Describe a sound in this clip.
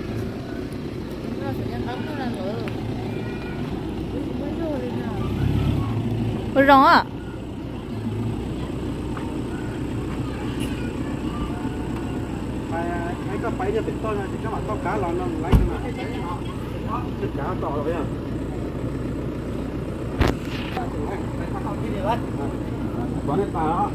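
A pickup truck's engine idles nearby.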